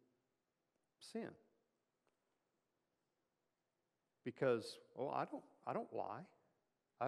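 An older man speaks calmly through a microphone, with pauses.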